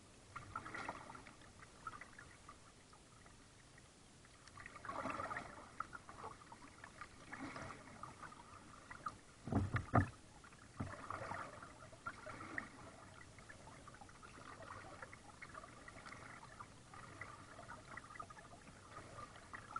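Water laps gently against a kayak's hull.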